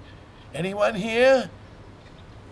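A young girl calls out questioningly, close by.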